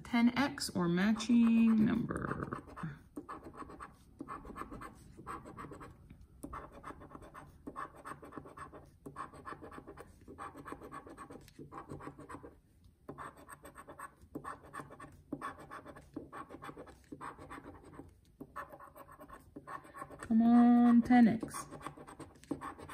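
A coin scratches rapidly across a scratch card in short rasping strokes.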